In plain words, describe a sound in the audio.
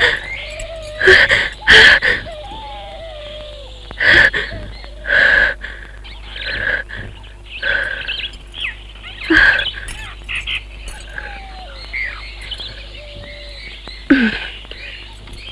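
A young woman cries out in distress.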